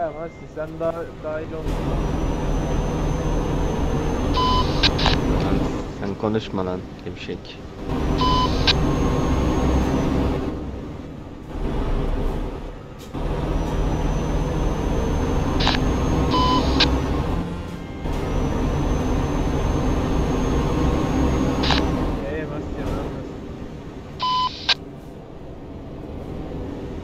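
A truck engine rumbles steadily, its pitch rising and falling with the gears.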